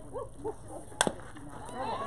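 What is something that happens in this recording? A bat strikes a softball with a sharp crack.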